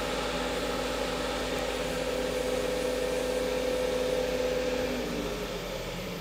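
A lathe motor hums steadily, then winds down.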